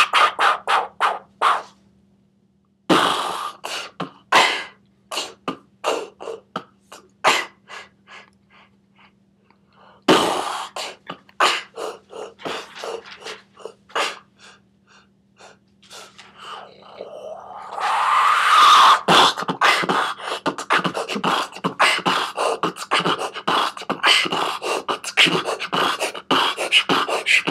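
A young man beatboxes into cupped hands.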